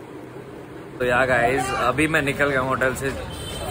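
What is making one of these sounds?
A young man talks outdoors, close by.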